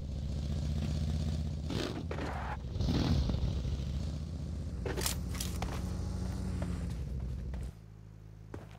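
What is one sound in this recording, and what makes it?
A buggy's engine rumbles steadily.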